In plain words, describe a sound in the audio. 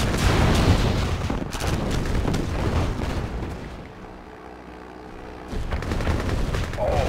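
Loud explosions boom and rumble in quick succession.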